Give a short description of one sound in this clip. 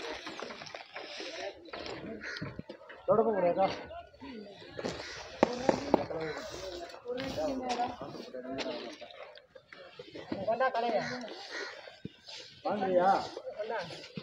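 Men talk with each other outdoors, nearby.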